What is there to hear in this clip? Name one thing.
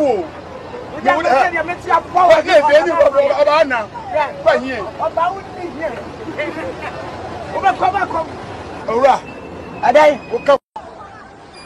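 An elderly man speaks loudly and agitatedly close by.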